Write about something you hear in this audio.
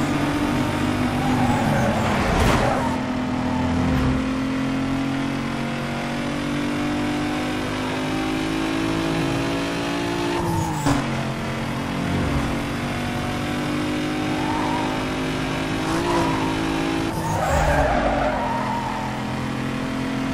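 A sports car engine roars at high speed, revving up and dropping as the gears shift.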